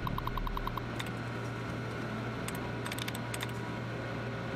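Sharp clicks sound from a computer terminal.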